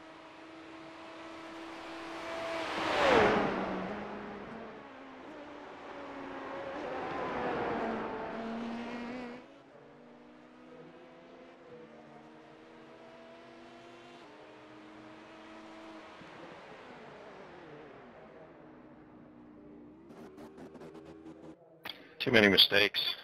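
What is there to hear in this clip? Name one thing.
Race car engines drone and whine steadily.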